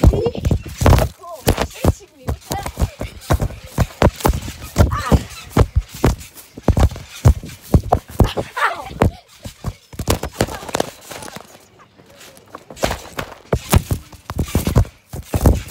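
Fabric rustles and bumps close by.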